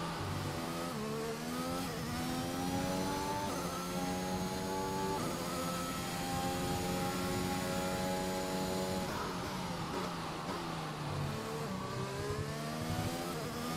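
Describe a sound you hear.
A racing car engine revs high, climbing through gear changes, then drops as it brakes and winds up again.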